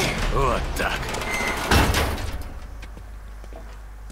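A wooden ladder clatters as it drops to the ground.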